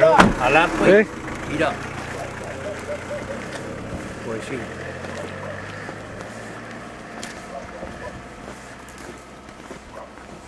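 A car engine idles and then drives away, slowly fading.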